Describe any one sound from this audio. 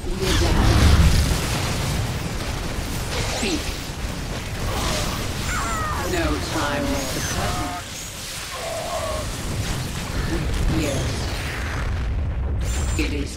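Explosions boom and rumble during a battle.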